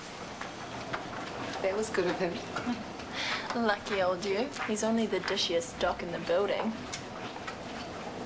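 A young woman laughs and chats.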